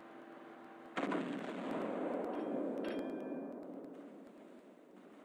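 Heavy naval guns fire with a loud, sudden boom that rumbles and slowly fades.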